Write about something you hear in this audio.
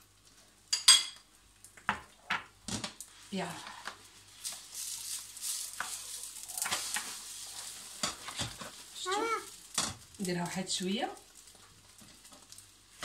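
Egg sizzles in a hot frying pan.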